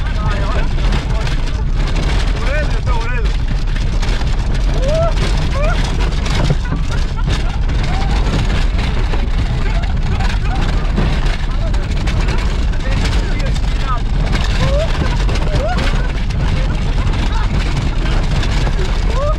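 Tyres crunch and bump over a rough dirt track.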